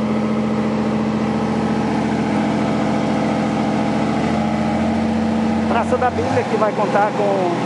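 A shovel scrapes across asphalt.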